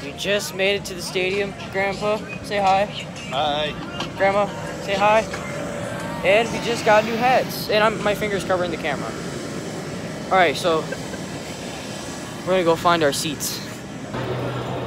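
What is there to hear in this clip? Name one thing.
A teenage boy talks with animation close to the microphone.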